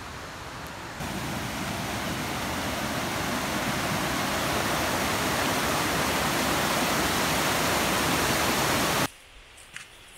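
A fast stream rushes loudly over rocks.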